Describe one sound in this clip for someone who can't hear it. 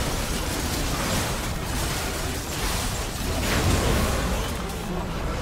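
Game spells and magic blasts crackle and boom in a chaotic battle.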